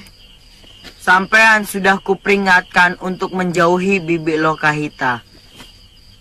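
A young boy speaks with animation, close by.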